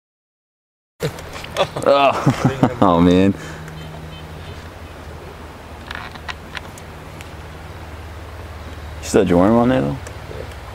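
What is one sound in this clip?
Water ripples gently on a calm river outdoors.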